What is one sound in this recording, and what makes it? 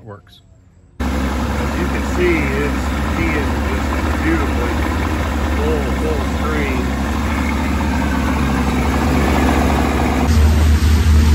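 Water churns and splashes behind a boat.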